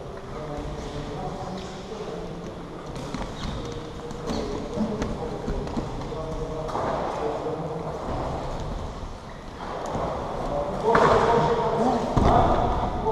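Feet shuffle and thud on a padded floor.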